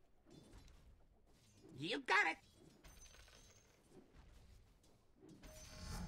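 Fighters clash with weapons and spells in a video game battle.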